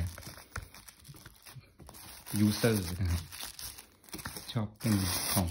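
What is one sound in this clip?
Plastic wrap crinkles and rustles under a hand's fingers.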